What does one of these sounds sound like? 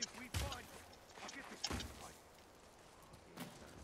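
A heavy body lands on stone with a thud.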